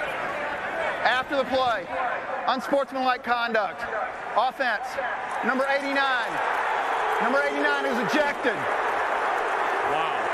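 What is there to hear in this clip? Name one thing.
A man announces a penalty calmly through a loudspeaker, echoing around the stadium.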